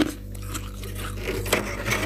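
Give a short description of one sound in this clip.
A hand crushes freezer frost with a crunch.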